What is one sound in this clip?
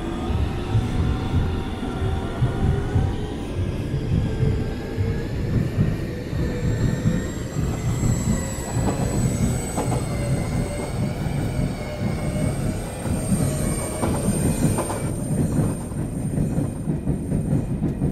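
An electric train motor whines, its pitch slowly shifting.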